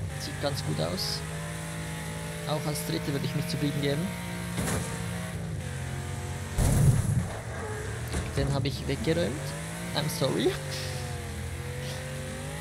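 A car engine roars steadily and revs up and down as gears shift.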